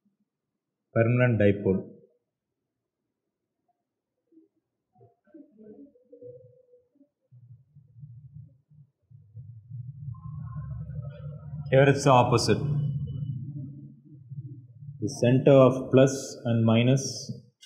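A man speaks in a lecturing tone, close by.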